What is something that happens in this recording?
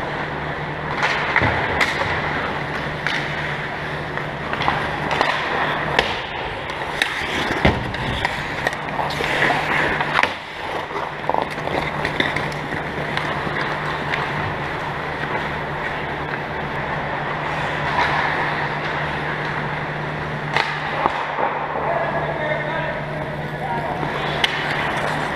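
Skate blades scrape and hiss across ice nearby.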